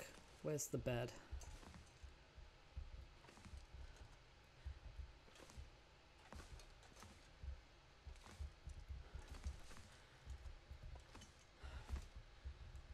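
Slow footsteps crunch on snow.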